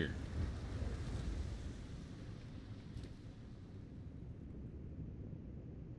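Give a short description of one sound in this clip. A fire crackles and roars low, slowly fading.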